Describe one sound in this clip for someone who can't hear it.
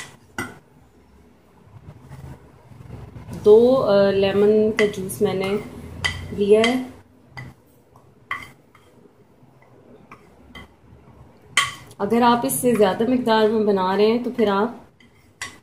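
A metal spoon scrapes and taps against a plate.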